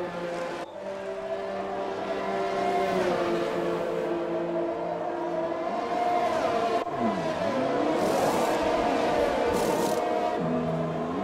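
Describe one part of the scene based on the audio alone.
A racing car engine whines loudly, its pitch rising and falling.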